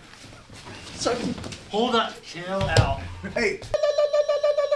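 Young men shout and laugh with excitement close by.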